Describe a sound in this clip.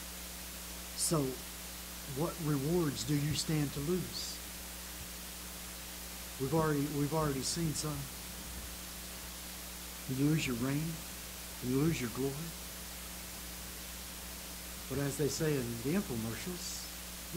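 An elderly man speaks slowly and solemnly into a microphone, with long pauses.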